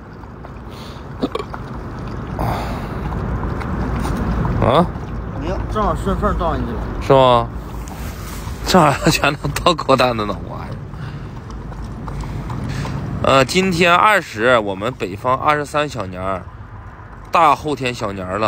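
Dogs lap up water.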